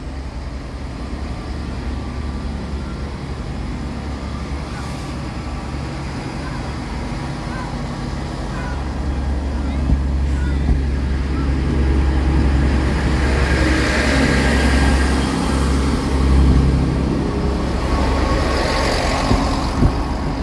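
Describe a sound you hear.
A diesel train engine drones loudly as it approaches and passes close by.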